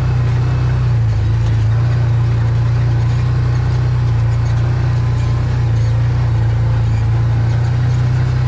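An off-road vehicle's engine drones steadily at close range.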